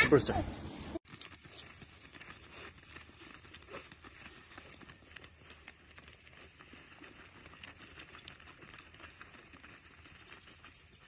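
Dogs dig and scratch in loose soil.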